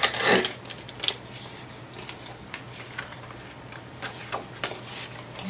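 Sheets of paper rustle and slide as they are handled.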